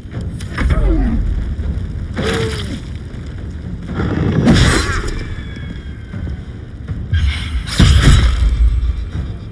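Explosions boom heavily.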